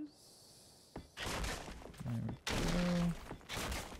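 A wooden structure collapses with a crumbling, rumbling crash.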